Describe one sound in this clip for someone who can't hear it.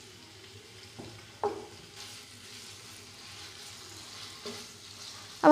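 A wooden spatula scrapes and taps against a frying pan.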